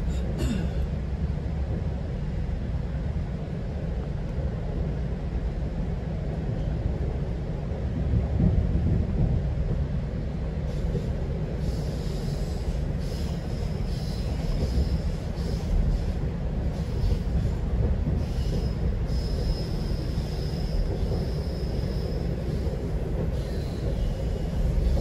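A train rumbles steadily along the tracks, heard from inside a carriage.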